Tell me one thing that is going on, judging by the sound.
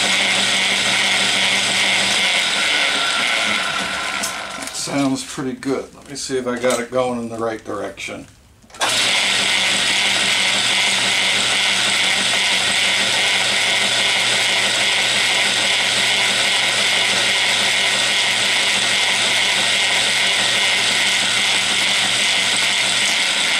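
A lathe motor hums and whirs steadily.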